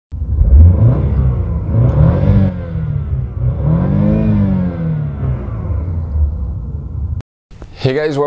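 A car engine revs up and down, rising and falling in pitch.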